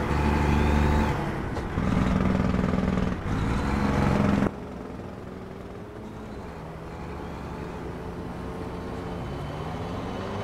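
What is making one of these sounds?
A truck engine hums and drones steadily, louder at first and then quieter and more distant.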